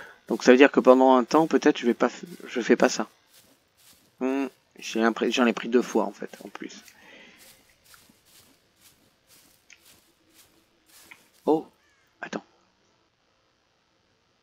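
Footsteps crunch steadily through grass and dry leaves.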